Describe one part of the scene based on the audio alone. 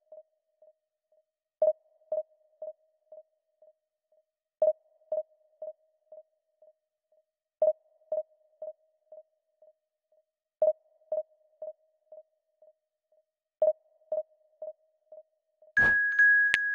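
Short electronic beeps repeat in bursts of fading pulses, about every three seconds.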